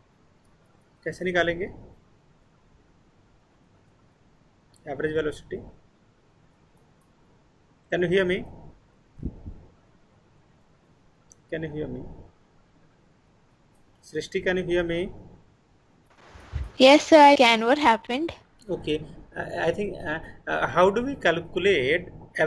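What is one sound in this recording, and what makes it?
A man speaks calmly in short phrases through an online call.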